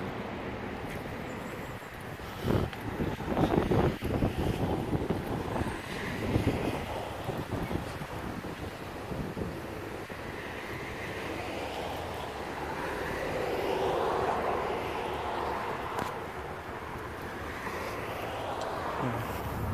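Wind rustles the leaves of the trees outdoors.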